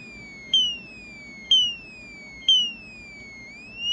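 A synthesizer plays short electronic chirps that sweep downward in pitch.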